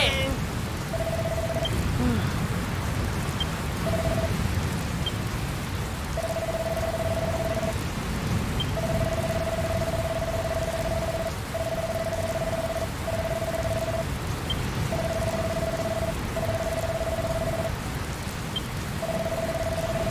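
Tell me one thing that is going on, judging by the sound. Short electronic beeps chatter in quick bursts.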